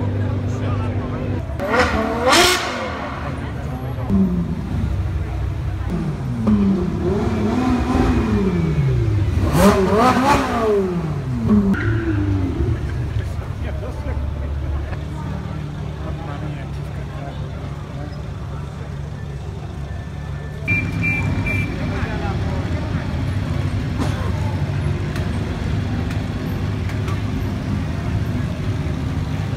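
A crowd murmurs in the street outdoors.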